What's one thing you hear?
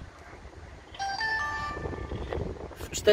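A small electronic device gives a short run of beeps as it switches on.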